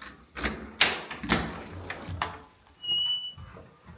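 A door latch clicks open.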